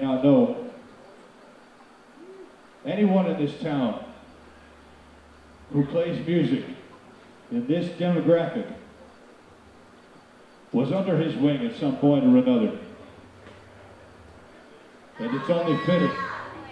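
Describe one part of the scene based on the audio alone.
A man speaks into a microphone in short phrases, with pauses between.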